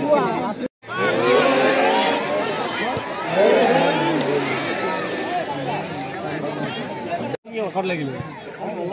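A large crowd of spectators cheers and shouts outdoors.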